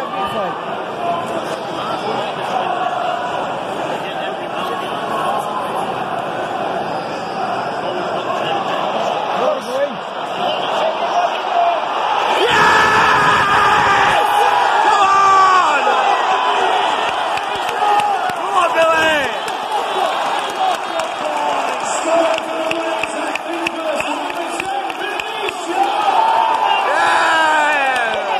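A large stadium crowd sings and chants loudly, outdoors.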